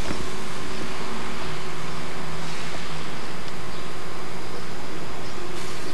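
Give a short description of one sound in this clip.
Food sizzles on a hot grill.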